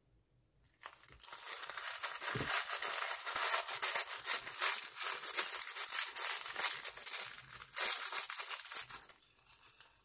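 Small plastic beads pour and patter into a glass dish.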